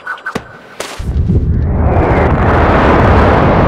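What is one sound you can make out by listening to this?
A strong rushing wind swirls and roars.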